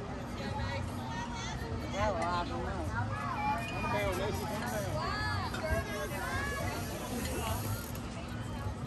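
Young women cheer and call out across an open field.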